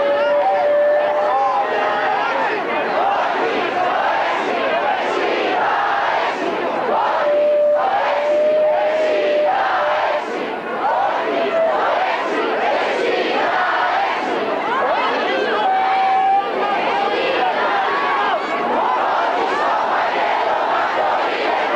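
A large outdoor crowd chants and shouts loudly.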